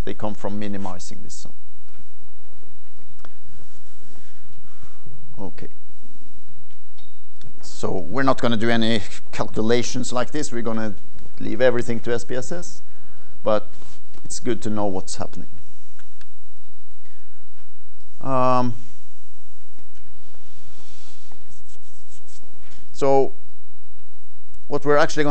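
An older man lectures through a microphone in a large room, speaking with pauses.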